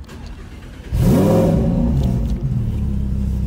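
A sports car engine starts with a loud roar and idles.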